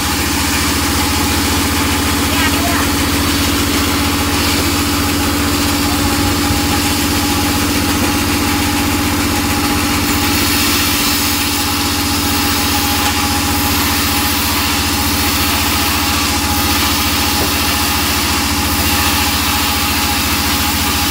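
A band saw machine runs with a loud, steady hum and whine.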